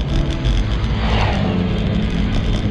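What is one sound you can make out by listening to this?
A motorcycle engine passes by on the road.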